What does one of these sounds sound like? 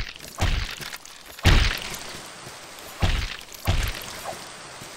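Heavy sword blows strike with deep thuds.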